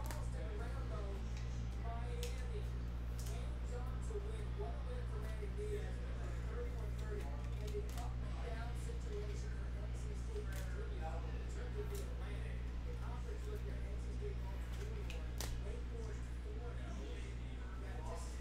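Cards click and slide as a hand handles them.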